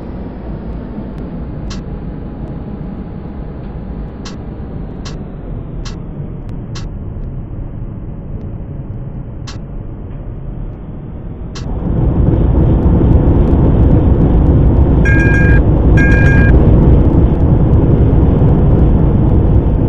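A tram rumbles along the rails with a steady hum that grows louder partway through.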